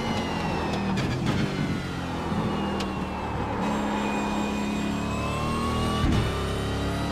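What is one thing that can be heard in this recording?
Gear changes clunk sharply between revs.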